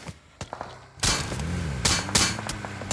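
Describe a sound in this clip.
A vehicle engine roars loudly.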